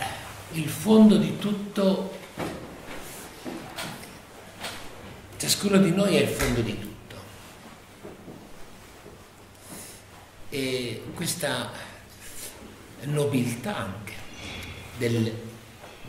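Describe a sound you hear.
An elderly man speaks calmly and close by, pausing often.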